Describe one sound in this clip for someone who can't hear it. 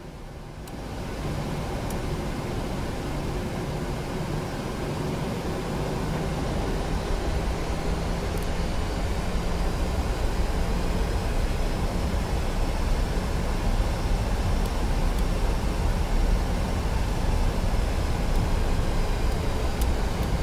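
Jet engines rumble and roar louder as an airliner speeds down a runway.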